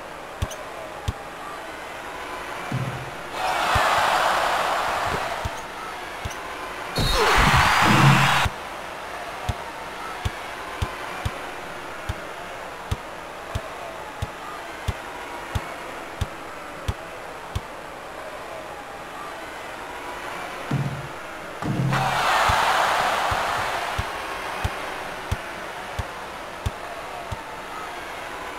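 A basketball bounces in a steady dribble.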